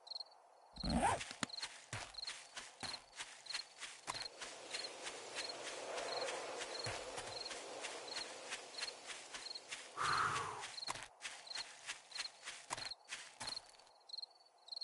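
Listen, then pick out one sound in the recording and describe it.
Footsteps crunch steadily through undergrowth.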